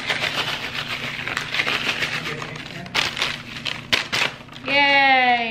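A plastic bag crinkles as crumbs are shaken out.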